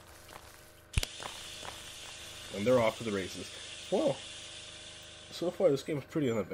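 Gas hisses steadily as a cloud of smoke pours out.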